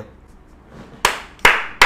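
Hands clap sharply.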